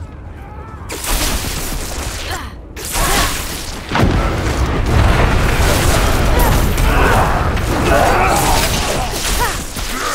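Lightning crackles and zaps.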